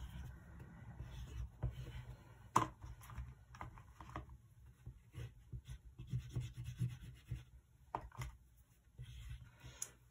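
A crayon scratches across paper.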